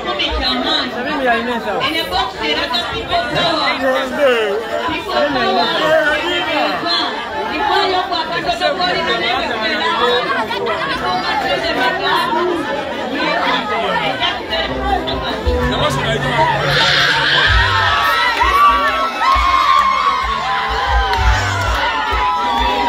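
Several men and women talk over one another in an agitated crowd outdoors.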